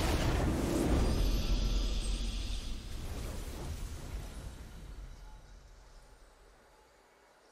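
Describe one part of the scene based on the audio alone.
A triumphant fanfare swells and slowly fades.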